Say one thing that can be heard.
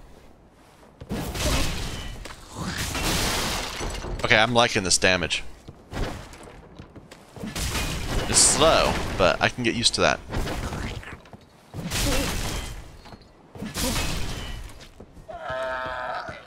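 A heavy axe swings and thuds into a creature.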